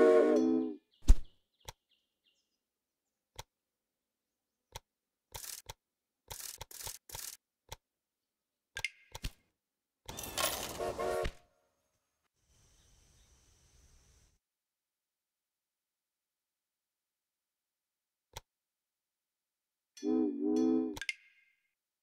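Soft interface clicks sound now and then.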